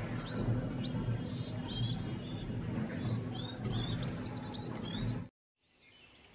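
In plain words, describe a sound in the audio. Baby pigeons squeak and cheep shrilly up close.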